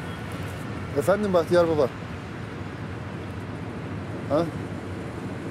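A man speaks quietly on a phone, close by.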